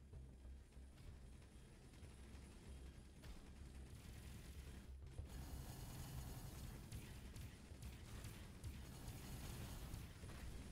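A deep spaceship engine rumbles steadily.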